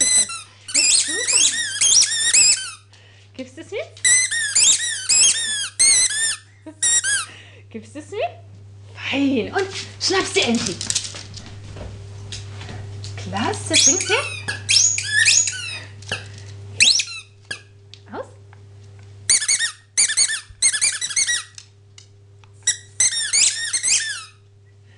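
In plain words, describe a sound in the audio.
A squeaky toy ball squeaks repeatedly in short, high bursts.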